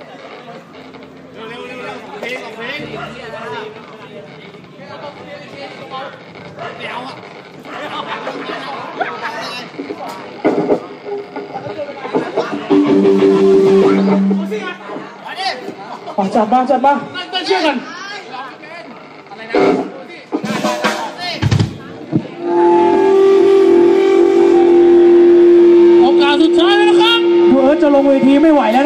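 A live rock band plays loudly through speakers.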